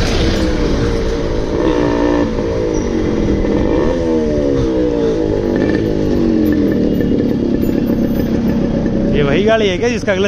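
A motorcycle engine thumps steadily as the bike rides past close by.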